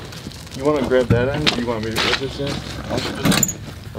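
A wheelbarrow rolls over concrete.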